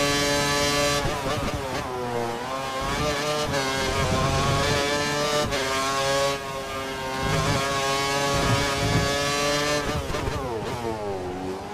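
A racing car engine drops and rises in pitch as the car brakes and speeds up again through corners.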